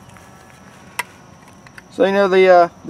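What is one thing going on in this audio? A small metal tin clicks as it is handled.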